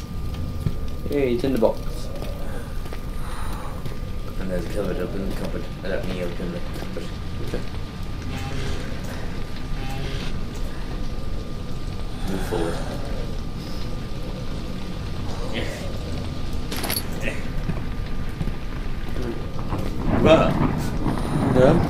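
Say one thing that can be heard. A young man talks quietly into a nearby microphone.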